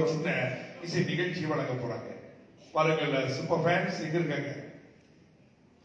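A man speaks loudly through a loudspeaker.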